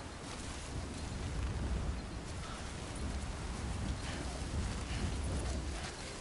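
Wind blows steadily and rumbles low outdoors.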